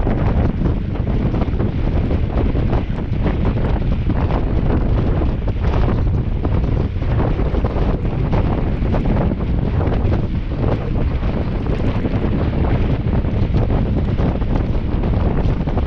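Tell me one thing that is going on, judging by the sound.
Bicycle tyres crunch over packed snow.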